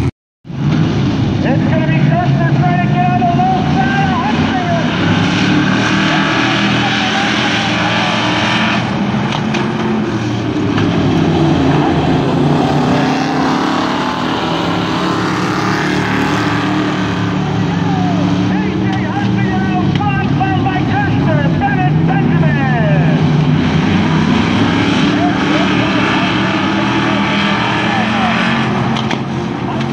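Car engines rev up and down.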